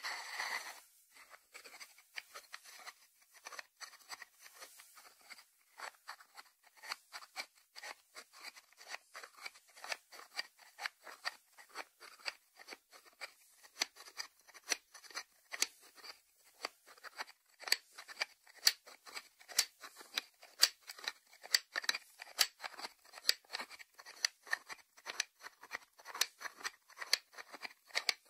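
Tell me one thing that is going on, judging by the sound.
Fingertips tap on a ceramic lid in quick, light clicks.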